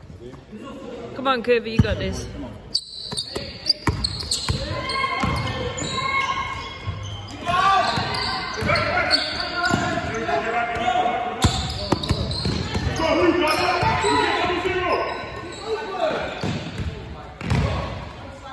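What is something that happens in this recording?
Teenage boys shout and call out in an echoing sports hall.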